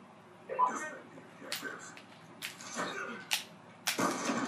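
Gunshots crack from a video game played through a television speaker.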